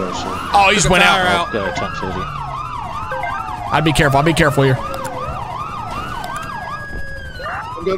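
A police siren wails up and down steadily.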